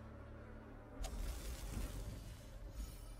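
A heavy blow lands with a crunching, noisy burst.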